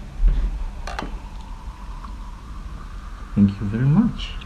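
Wine pours into a glass with a rising gurgle.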